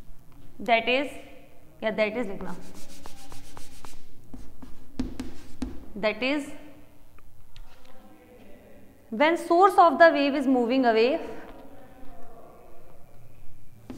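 A young woman speaks calmly, as if teaching.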